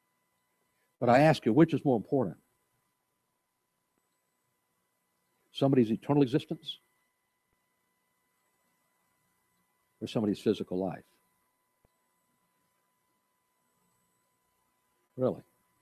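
A middle-aged man speaks slowly and calmly through a microphone, with long pauses.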